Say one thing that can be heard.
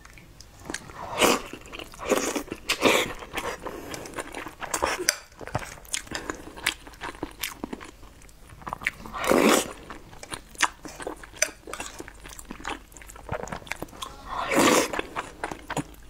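A young woman slurps food loudly up close.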